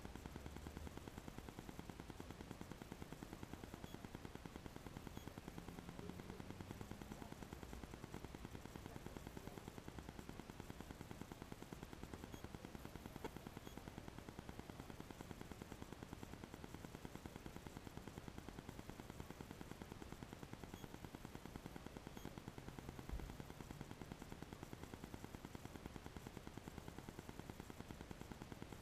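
A car engine idles steadily, heard from inside the car.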